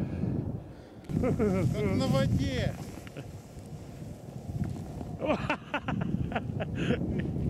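A snowboard scrapes across packed snow.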